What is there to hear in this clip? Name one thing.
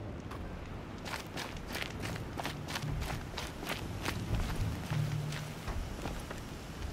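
Quick footsteps crunch on dry, dusty ground.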